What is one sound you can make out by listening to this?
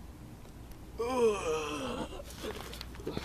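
A teenage boy cries out loudly in a wavering voice.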